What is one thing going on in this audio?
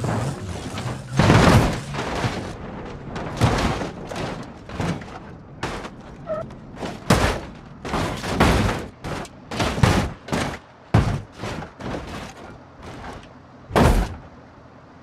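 Metal crashes and crunches repeatedly.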